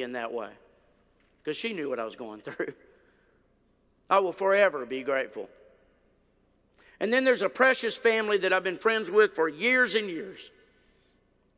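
An older man speaks with animation through a microphone, pausing between phrases.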